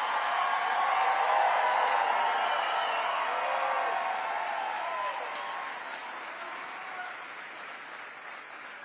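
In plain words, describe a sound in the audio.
A large crowd cheers and applauds, then slowly quiets down.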